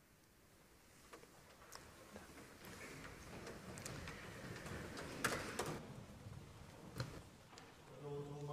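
A congregation rises to its feet with shuffling and creaking of wooden pews.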